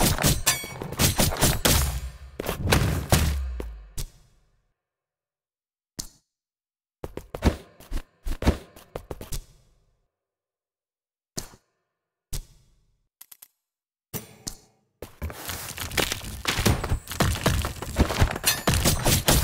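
Sword slashes and heavy impacts clash loudly.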